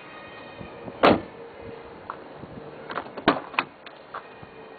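A car door clunks and clicks as it is handled.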